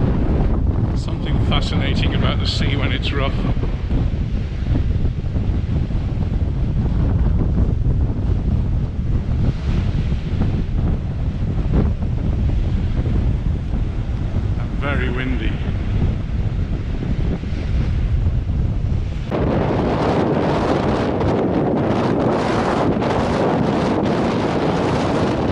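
Waves crash and wash onto a rocky shore.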